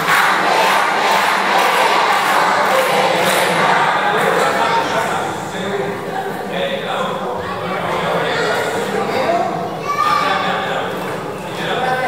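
A children's choir sings in an echoing hall.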